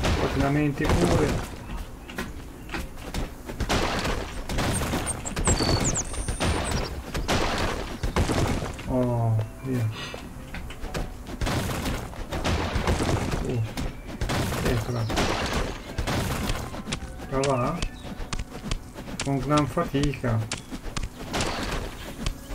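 A pickaxe chips at blocks with sharp game knocks.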